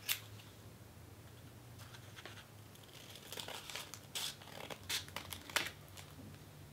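Scissors snip through paper with crisp cuts.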